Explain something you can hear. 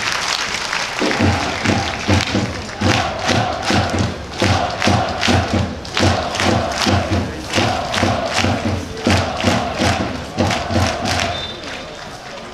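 Drums pound in a steady rhythm.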